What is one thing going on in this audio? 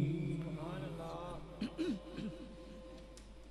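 A man sings a melodic recitation into a microphone over a loudspeaker system, then falls silent.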